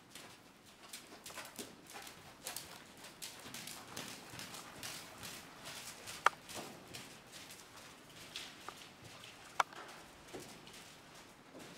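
Hooves thud softly and rhythmically on soft sand.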